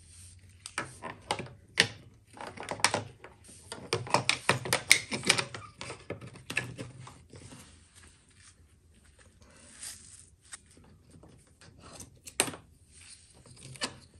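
Plastic parts and wires click and rustle as gloved hands handle them.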